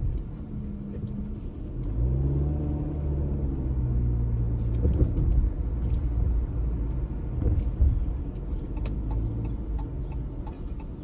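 A car engine hums steadily from inside the car as it drives slowly.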